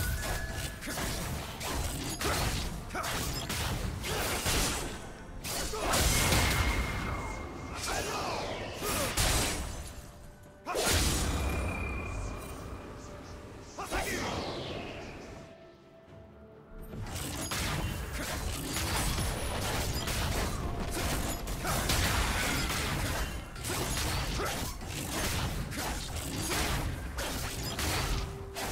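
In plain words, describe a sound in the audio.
Spell effects whoosh, zap and crackle in a fast fight.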